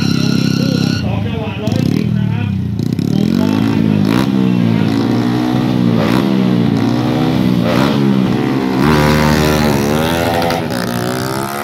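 A motorcycle engine revs up and down over and over.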